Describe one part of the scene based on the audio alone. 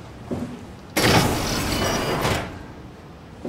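A heavy metal door slides open with a loud rush.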